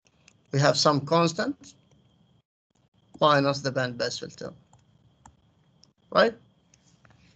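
A man explains calmly over an online call.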